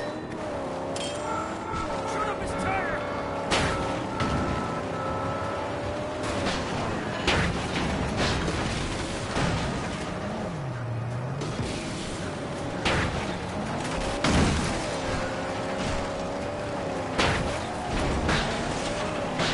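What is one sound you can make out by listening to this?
A car engine revs hard.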